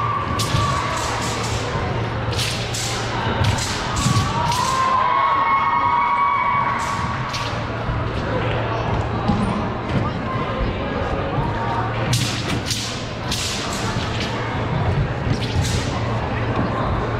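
A martial artist's feet stamp and slap on a gym floor.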